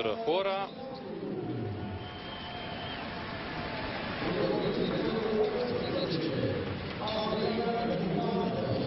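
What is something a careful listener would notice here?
A large stadium crowd murmurs and chants steadily outdoors.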